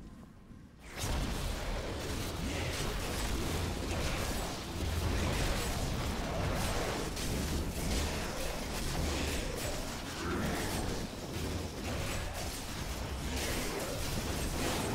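Weapons slash and strike with dense, clashing hits.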